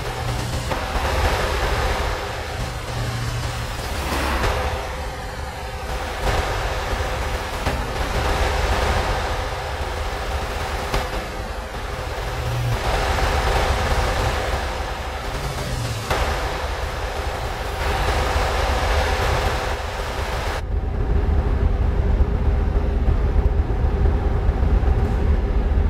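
Tyres roar on a motorway.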